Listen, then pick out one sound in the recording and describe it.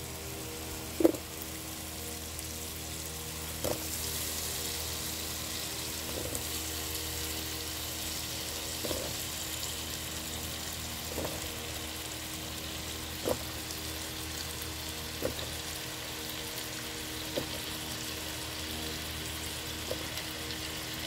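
Chunks of potato drop one by one into a pot with soft thuds.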